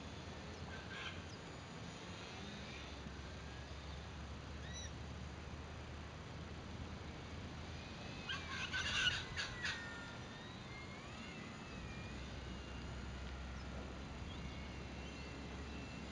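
A model plane's motor whines overhead as the plane passes.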